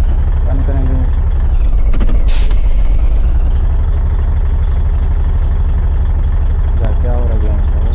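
A heavy truck engine rumbles steadily.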